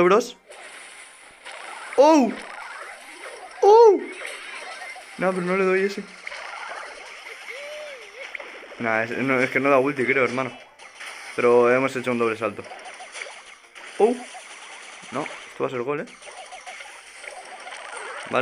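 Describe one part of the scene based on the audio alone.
Video game shots and blasts pop and crackle.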